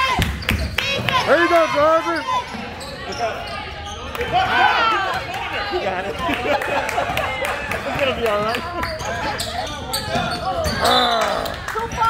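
Young players shout across a large echoing gym.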